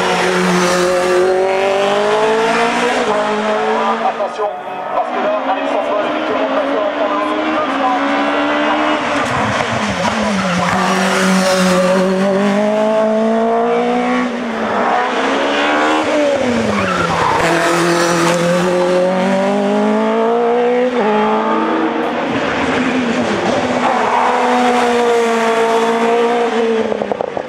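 A racing car engine screams at high revs, rising and dropping sharply with each gear change.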